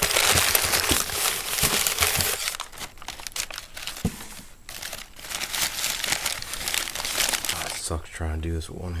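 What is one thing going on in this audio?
Paper crinkles and rustles as it is handled close by.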